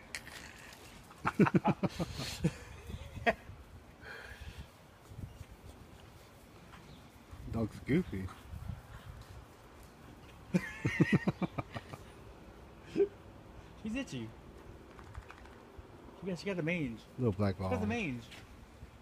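A dog runs and rolls about on grass.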